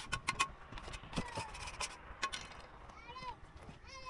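A trowel scrapes and taps on concrete.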